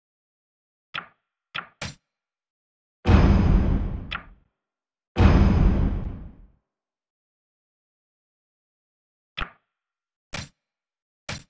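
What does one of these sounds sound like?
Short interface clicks sound as menu buttons are tapped.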